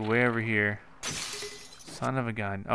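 A wooden bow shatters with a bright crash.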